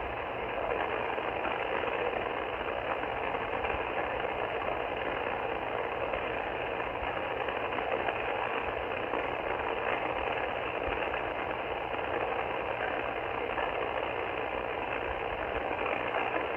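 A radio receiver hisses with steady static from its loudspeaker.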